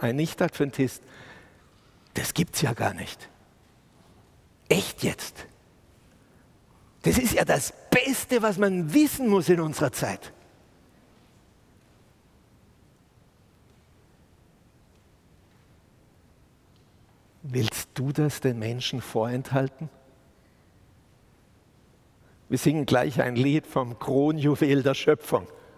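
A middle-aged man speaks with animation into a microphone, pausing often.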